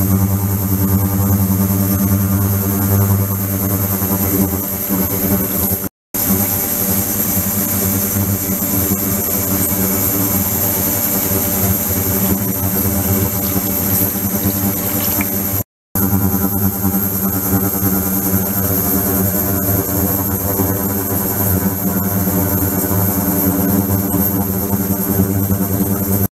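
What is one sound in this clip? Water pours and splashes into a tank.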